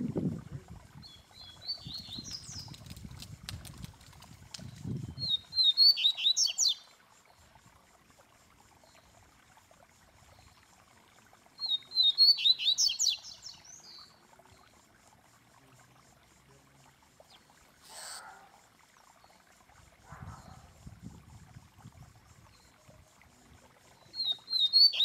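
A caged songbird sings loud, bright chirping phrases close by.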